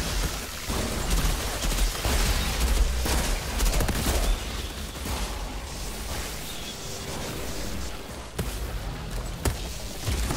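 Electric energy crackles and zaps.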